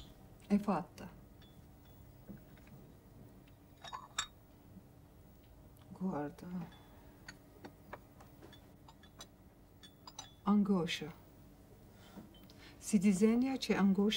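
A middle-aged woman speaks quietly and slowly, close by.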